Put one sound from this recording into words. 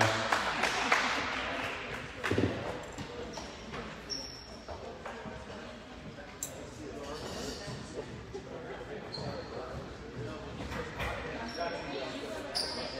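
A small crowd murmurs in the background.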